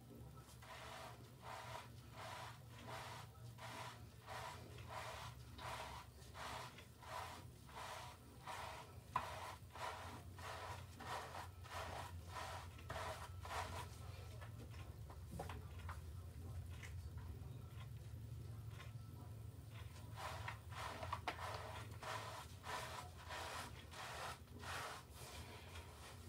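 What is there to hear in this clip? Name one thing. Hands rhythmically squish and scrub lathered hair.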